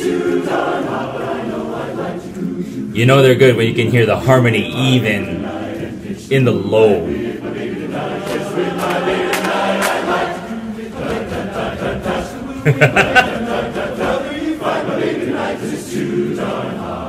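A large men's choir sings with several voices.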